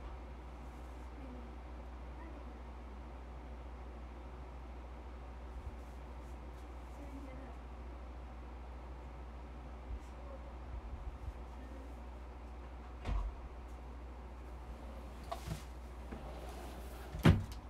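A young woman speaks softly and cheerfully close by.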